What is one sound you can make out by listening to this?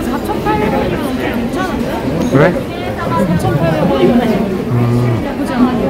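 People murmur in a busy crowd.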